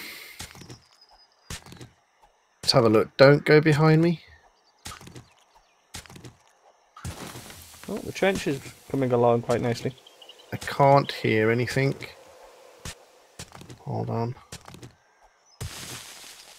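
A shovel thuds into packed earth, again and again.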